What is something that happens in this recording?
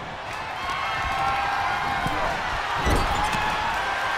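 Heavy thuds of bodies hit a wrestling ring mat.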